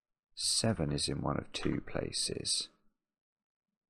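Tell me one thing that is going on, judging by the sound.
A middle-aged man speaks calmly and closely into a microphone.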